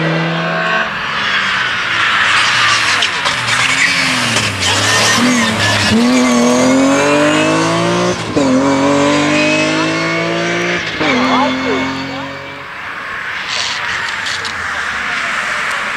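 A rally car engine roars loudly while accelerating through a bend.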